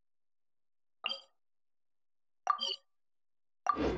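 Short soft chimes click as a menu is used.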